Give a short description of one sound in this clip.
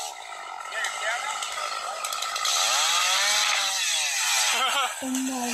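A chainsaw buzzes, cutting through a log.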